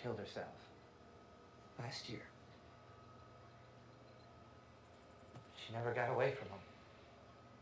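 A young man speaks calmly and quietly nearby.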